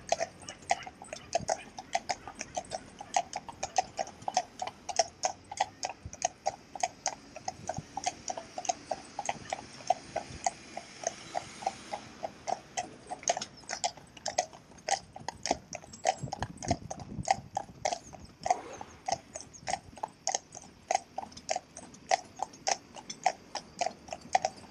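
Horses' hooves clop steadily on a paved road.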